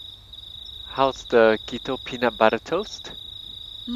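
A woman asks a question close by.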